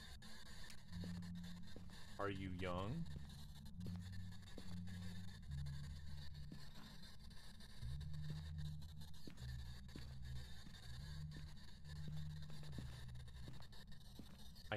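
A radio hums with low, wavering tones.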